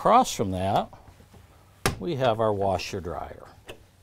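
A cabinet door clicks open.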